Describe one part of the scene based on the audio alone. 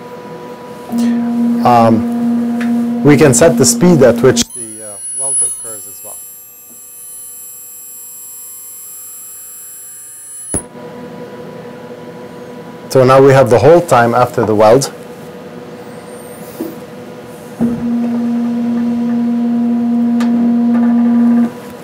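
A machine hums with a steady low drone, starting and stopping abruptly.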